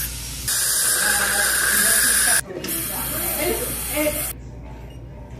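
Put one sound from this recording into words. A dental suction tube hisses and slurps loudly.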